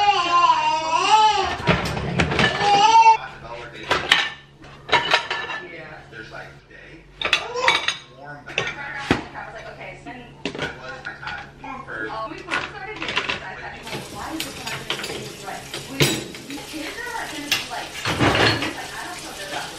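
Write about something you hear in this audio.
Dishes clink and clatter as a dishwasher is loaded.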